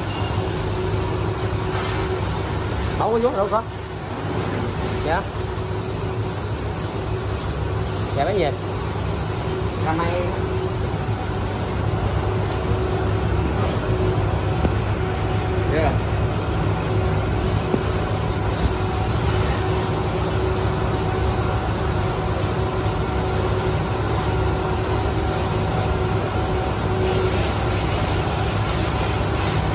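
An electric fan hums steadily.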